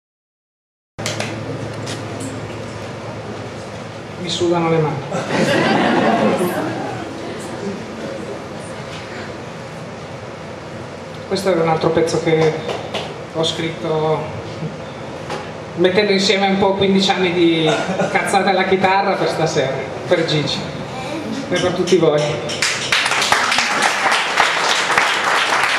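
A man plays an acoustic guitar.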